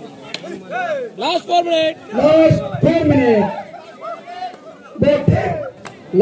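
A crowd of young men cheers and shouts loudly.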